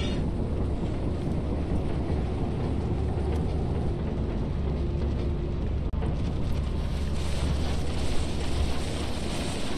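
A low engine rumbles steadily.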